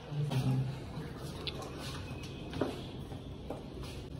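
A wooden door bangs against a wall.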